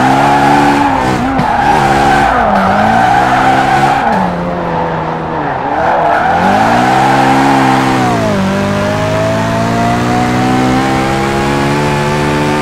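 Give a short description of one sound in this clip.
A car engine roars loudly, its pitch dropping and climbing as the gears shift.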